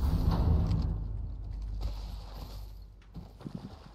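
An explosion booms and rumbles away.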